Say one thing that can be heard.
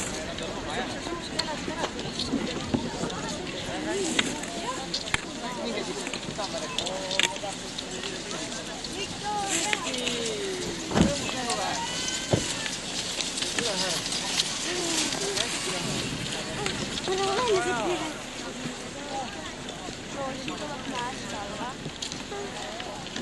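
Skis swish and scrape across packed snow.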